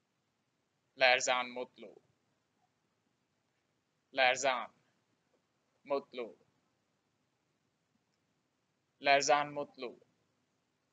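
A young man speaks calmly into a close microphone in short phrases with pauses.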